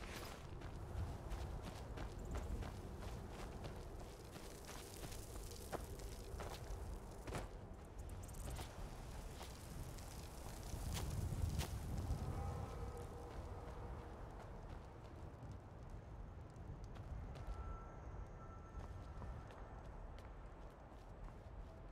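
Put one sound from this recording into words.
Armoured footsteps crunch and clank over rough ground.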